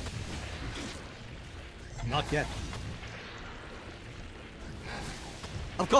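Magic spell sound effects whoosh and crackle in a video game.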